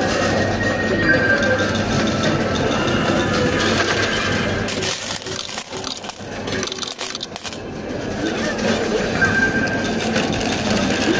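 A coin pusher shelf slides back and forth, scraping coins.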